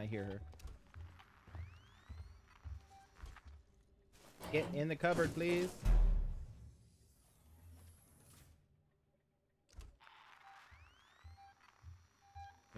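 A motion tracker beeps and pings.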